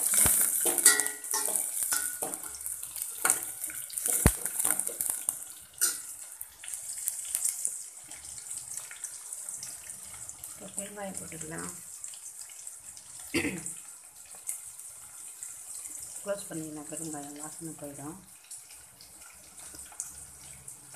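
Hot oil sizzles and crackles in a pot, loud at first and then quieter.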